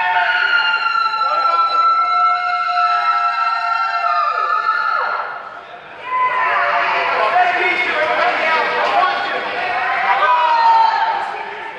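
Loud music with sliding, wailing tones plays.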